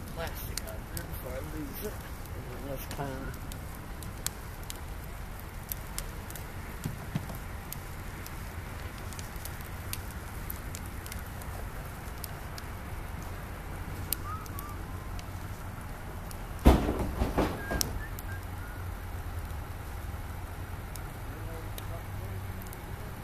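A bonfire crackles and pops steadily outdoors.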